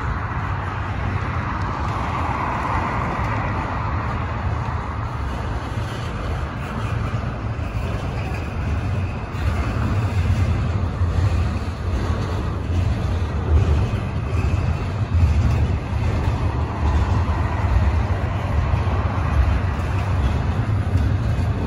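A long freight train rumbles steadily past close by.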